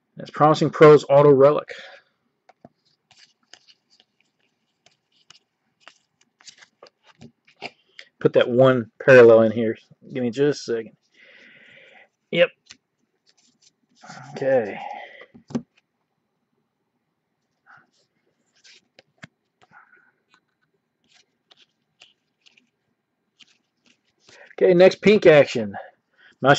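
Trading cards rustle and flick softly between fingers.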